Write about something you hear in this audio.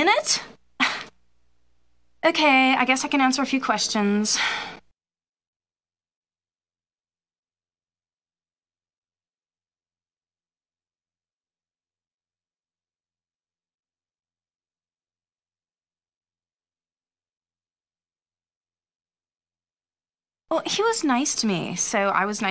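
A woman speaks calmly, heard close up.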